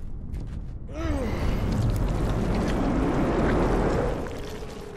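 Debris rumbles and crashes loudly.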